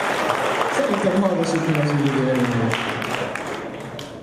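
A young man speaks through a microphone.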